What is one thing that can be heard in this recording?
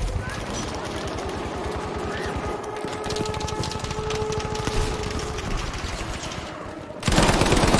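Rapid gunfire rattles nearby.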